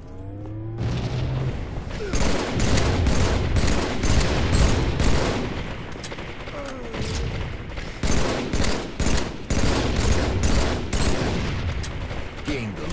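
Rifle shots crack loudly again and again.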